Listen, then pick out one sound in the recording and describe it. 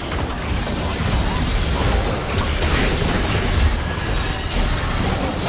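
Game characters' weapons clash and strike.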